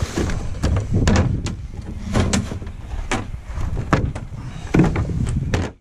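A plastic bin lid bangs open.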